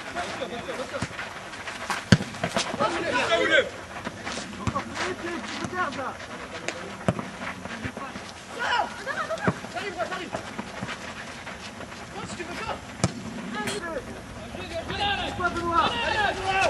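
A football thumps off a boot.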